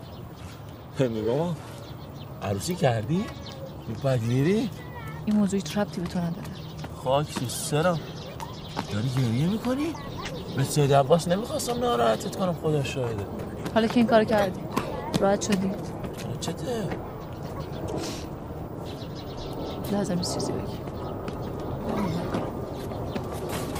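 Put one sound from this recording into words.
Young girls talk and call out nearby, outdoors.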